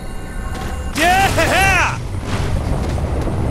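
A sharp crackling burst sounds as a figure slams down onto a rooftop.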